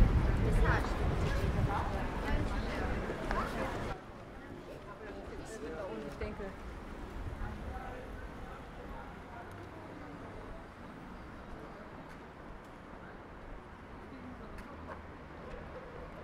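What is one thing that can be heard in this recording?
Men and women chatter at a distance on a busy street outdoors.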